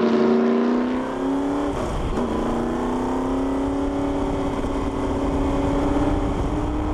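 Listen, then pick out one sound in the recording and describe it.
A race car engine roars up close.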